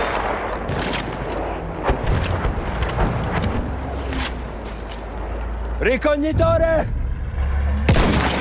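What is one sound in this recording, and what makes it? Gunshots crack sharply now and then.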